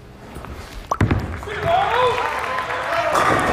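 Bowling pins crash and clatter loudly.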